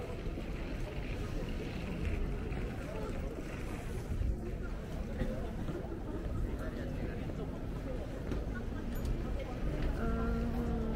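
A crowd of young men and women chatter on a busy street outdoors.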